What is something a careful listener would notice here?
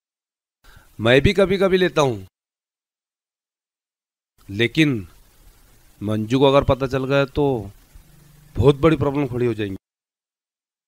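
A middle-aged man talks calmly and close by.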